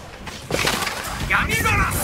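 Fire bursts with a roar.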